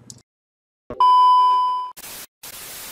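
A steady high test tone sounds.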